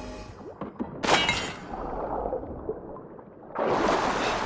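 Water splashes as a figure wades through it.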